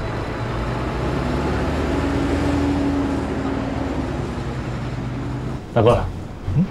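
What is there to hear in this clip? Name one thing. A bus engine hums as the bus drives past.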